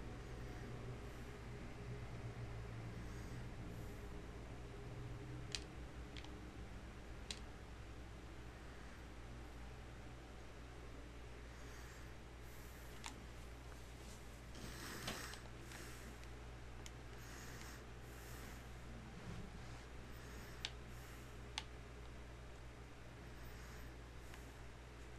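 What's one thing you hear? A man talks calmly into a nearby microphone.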